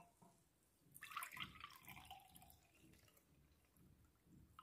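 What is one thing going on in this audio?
Liquid pours from a pot through a strainer into a glass jug.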